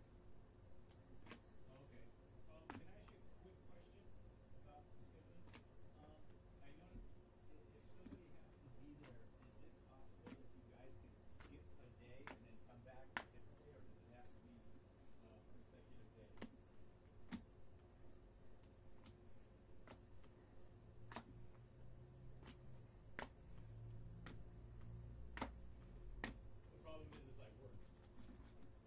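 Trading cards click and slap against each other as they are shuffled by hand.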